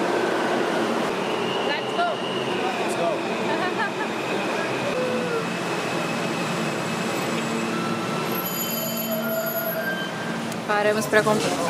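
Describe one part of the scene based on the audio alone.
A subway train rumbles and squeals along a platform.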